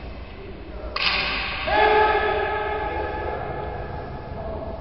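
A man lets out a loud, long shout that echoes in a large hall.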